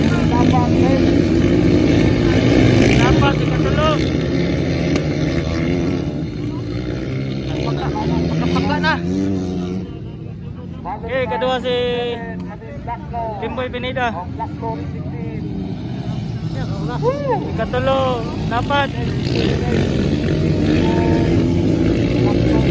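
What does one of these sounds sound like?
Several dirt bikes race, their engines revving up and down.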